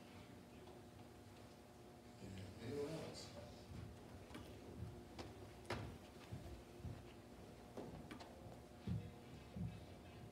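A man speaks calmly in an echoing hall.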